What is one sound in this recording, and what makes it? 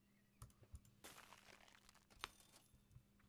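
A video game plays a brief rustling shuffle as items are rerolled.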